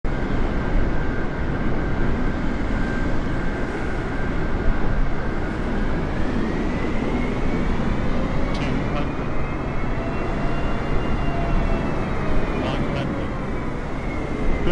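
A jet airliner's engines roar loudly and steadily with a high whine.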